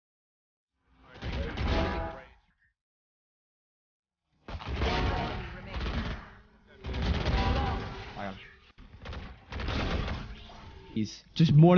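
Gunfire bursts in quick volleys.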